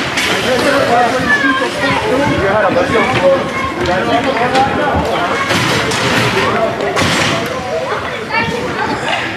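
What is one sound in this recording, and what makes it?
Several spectators shout and cheer close by.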